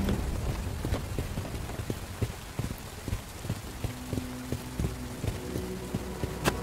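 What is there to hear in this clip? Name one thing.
Footsteps thud steadily on wet wooden boards.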